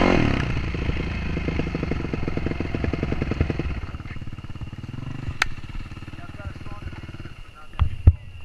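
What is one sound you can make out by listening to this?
A dirt bike engine idles close by, putting along and slowing down.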